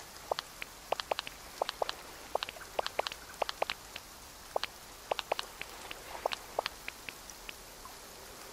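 Short game menu clicks tick quickly, again and again.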